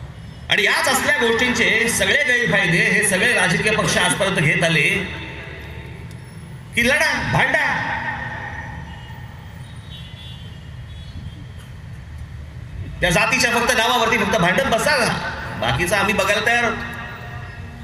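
A man gives a loud, echoing speech over loudspeakers outdoors.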